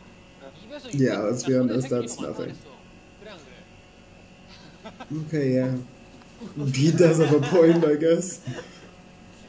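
A young man talks and laughs with animation, close by.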